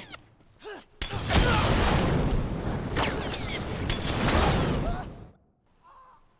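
A loud explosion booms and roars close by.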